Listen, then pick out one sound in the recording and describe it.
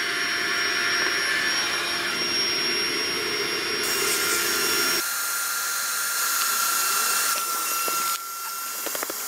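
An electric air pump whirs steadily.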